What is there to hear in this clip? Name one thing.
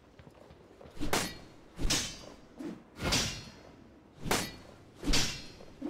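A sword swooshes and strikes repeatedly in quick bursts.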